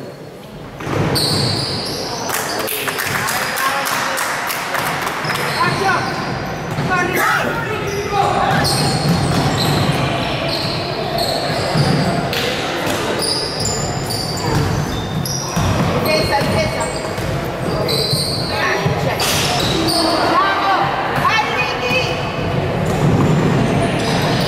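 Young men shout to each other across a large echoing gym.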